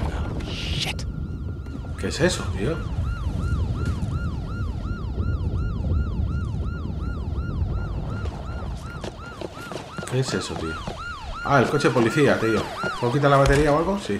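A car alarm whoops over and over.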